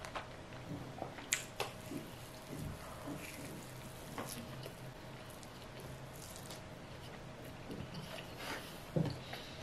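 A young woman chews food with soft, wet smacking sounds close to a microphone.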